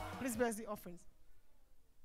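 A woman speaks into a microphone with animation, heard through loudspeakers in an echoing hall.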